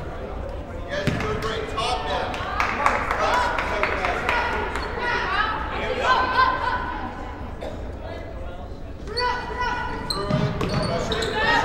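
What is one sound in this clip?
A crowd of young women and girls cheers and chants loudly in an echoing gym.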